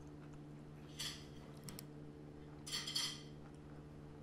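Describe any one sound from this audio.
Toast scrapes and rustles as it is lifted from a plate.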